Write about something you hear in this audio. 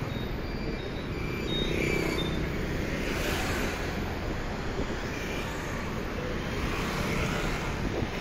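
A motor scooter hums as it rides past.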